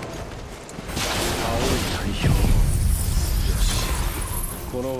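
Magic blasts and sword strikes crash loudly.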